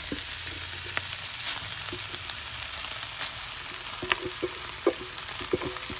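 Noodles drop into a sizzling pan with a soft thud.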